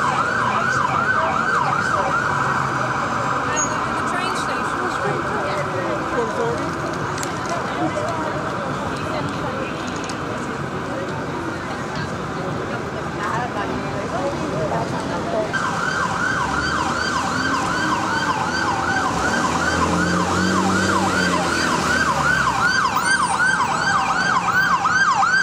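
An emergency siren yelps rapidly and loudly nearby.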